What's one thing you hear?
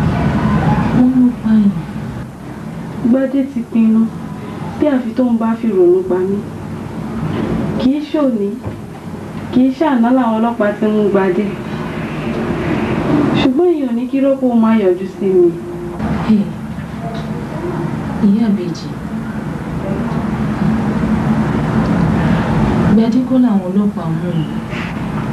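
A young woman speaks close by, pleading and distressed.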